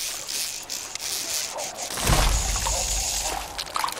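Water splashes as a fish thrashes on a fishing line.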